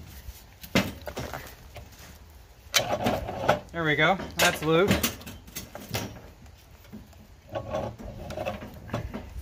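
Metal engine parts clank and knock as they are handled.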